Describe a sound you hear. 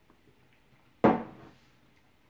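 A glass mug thumps down on a table.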